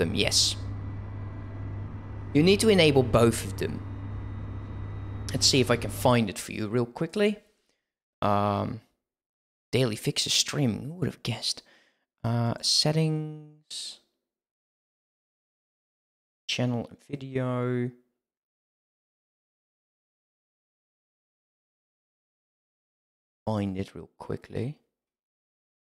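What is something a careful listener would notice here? A young man talks into a close microphone, in short bursts with pauses.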